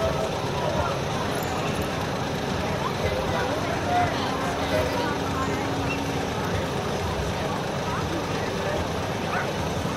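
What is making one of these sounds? A diesel semi truck rolls slowly past.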